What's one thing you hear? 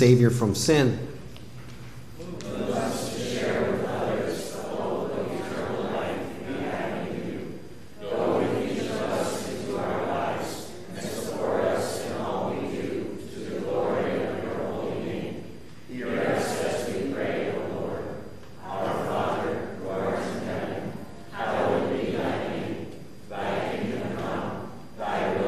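A man recites a prayer aloud through a microphone.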